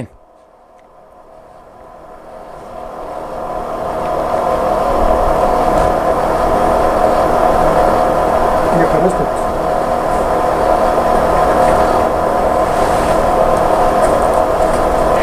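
A model locomotive's engine drones steadily, growing louder.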